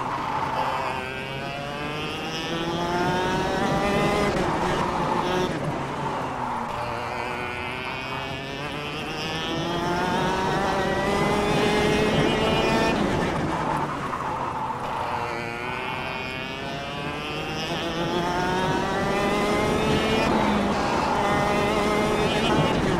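A kart engine whines, rising in pitch as it speeds up and dropping when it slows for corners.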